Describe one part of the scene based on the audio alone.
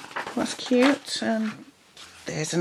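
A paper page is turned with a soft rustle.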